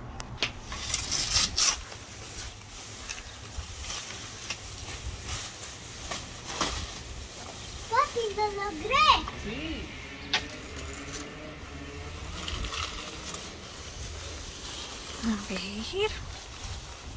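A plastic sheet rustles and crinkles as it is handled.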